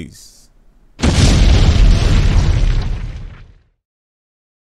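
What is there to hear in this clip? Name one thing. An explosion booms and rumbles, then fades away.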